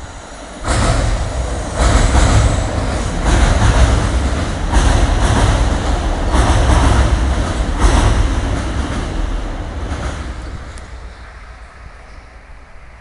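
A train rumbles across a bridge, wheels clattering rhythmically, then fades away.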